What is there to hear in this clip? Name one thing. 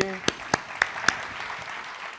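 A man claps his hands nearby.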